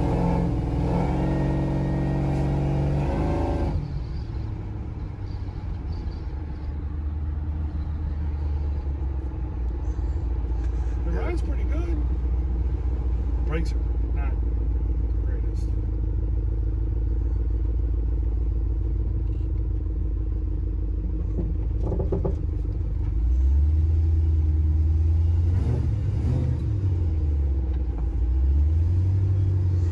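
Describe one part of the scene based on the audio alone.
Tyres hum on a paved road.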